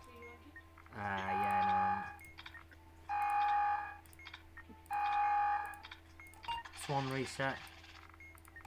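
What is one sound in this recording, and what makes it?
Short electronic chimes sound as keypad buttons are pressed.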